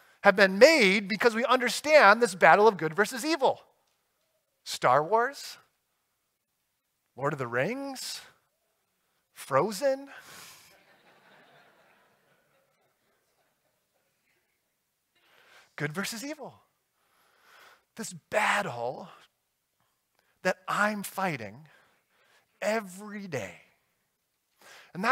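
A man speaks with animation through a microphone, pausing often.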